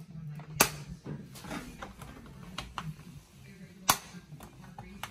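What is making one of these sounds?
Oven knobs click as a hand turns them.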